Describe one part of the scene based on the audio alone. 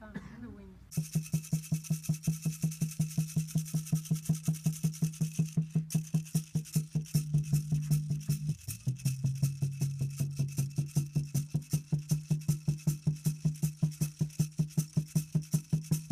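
A rattle shakes in a fast, steady beat.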